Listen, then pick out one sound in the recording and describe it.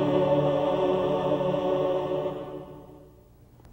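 A choir sings a sustained chord that slowly fades away.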